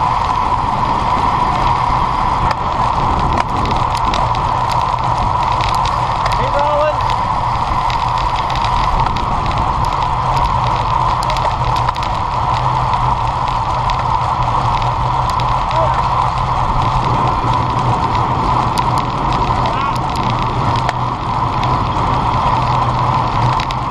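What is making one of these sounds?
Bicycle tyres hum on the road surface.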